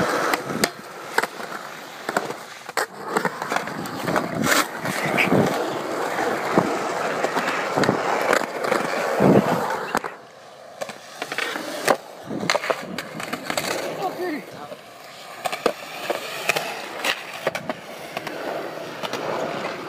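Skateboard wheels roll and rumble over concrete.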